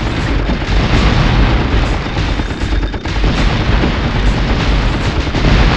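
Fireballs burst with crackling blasts.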